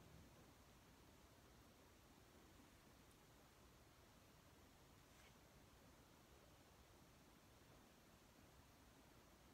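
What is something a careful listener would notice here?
A gloved finger softly smears wet paint.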